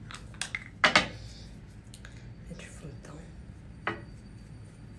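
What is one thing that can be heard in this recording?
A small plastic makeup cap clicks.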